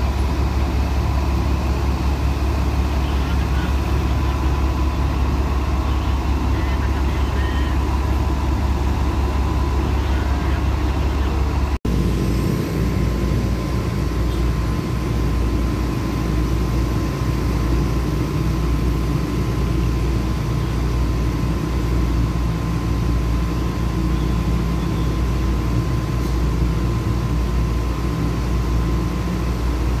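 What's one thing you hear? A large truck engine idles nearby with a deep, steady rumble.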